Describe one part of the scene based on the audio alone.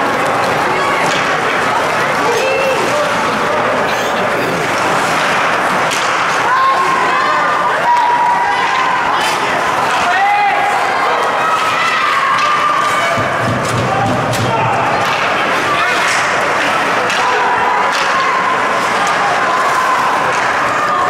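A crowd of spectators cheers and shouts in a large echoing rink.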